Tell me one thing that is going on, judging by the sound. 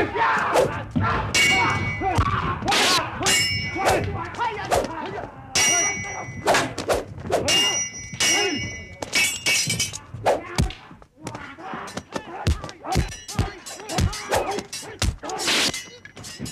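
Swords clash and ring sharply, again and again.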